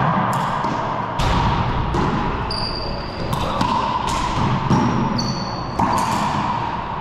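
A racquetball ball smacks off the walls of an echoing court.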